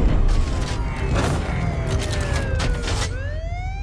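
A police siren wails and sweeps up and down.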